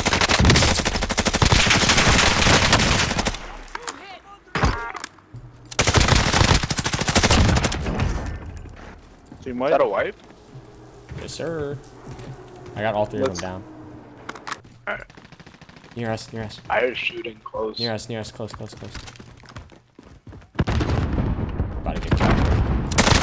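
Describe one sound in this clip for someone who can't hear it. Gunfire rattles loudly in bursts.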